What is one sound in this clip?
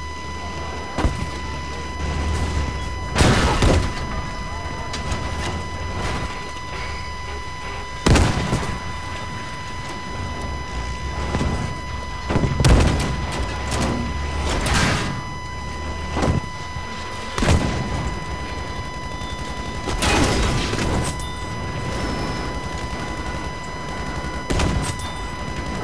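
Loud explosions boom and crack again and again.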